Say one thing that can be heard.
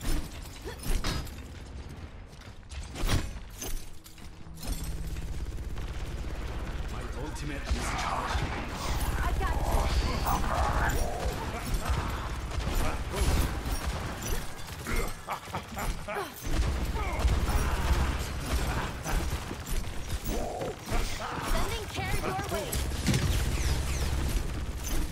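Gunfire from a video game crackles in rapid bursts.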